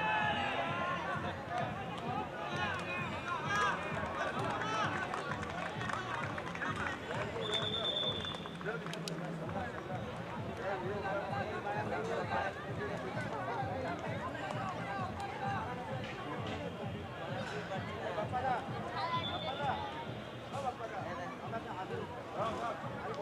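A crowd of young men chatters and calls out nearby outdoors.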